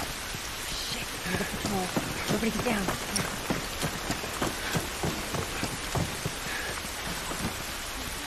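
Footsteps crunch quickly over gravel and rubble.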